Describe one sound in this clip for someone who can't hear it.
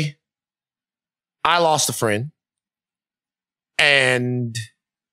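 A man speaks with feeling into a close microphone, in short bursts with pauses.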